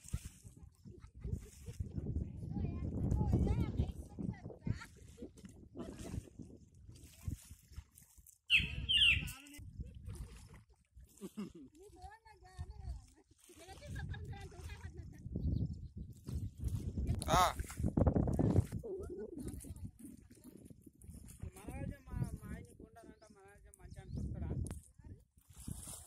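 Water splashes softly as seedlings are pushed into a flooded field.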